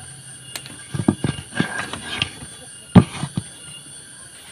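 A heavy wooden block thumps and scrapes as it is moved.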